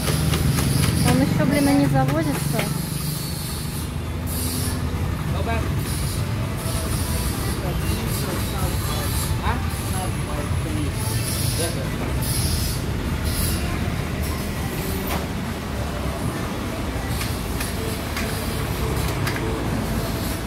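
Men talk casually with each other nearby.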